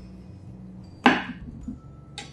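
A knife knocks sharply against a wooden cutting board.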